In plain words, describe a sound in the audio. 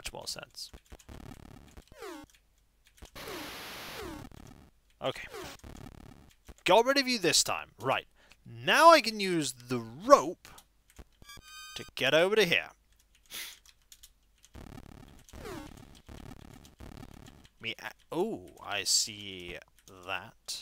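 Retro video game music and beeping sound effects play.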